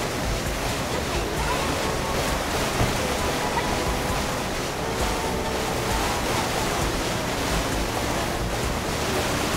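A jet ski engine roars steadily while skimming across water.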